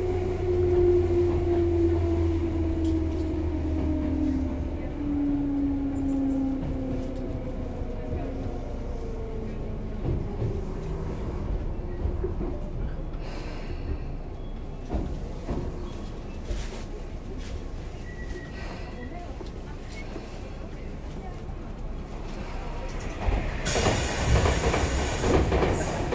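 An electric train hums as it rolls slowly along the track.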